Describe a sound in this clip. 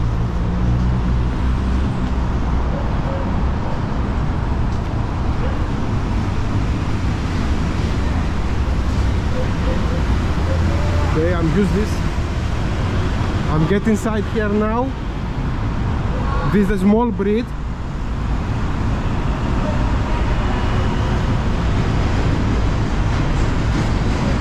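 Traffic roars steadily nearby.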